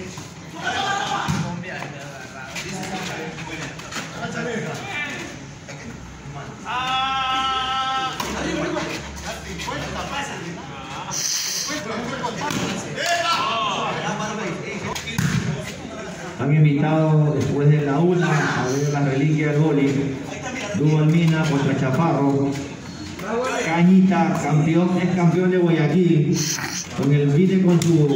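Men call out and talk loudly nearby outdoors.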